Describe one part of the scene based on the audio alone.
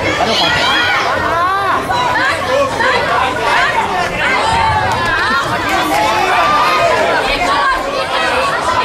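A crowd of men and women shouts and calls out loudly in a large echoing hall.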